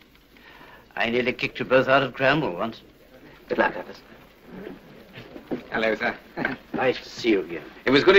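A younger man speaks with a cheerful tone.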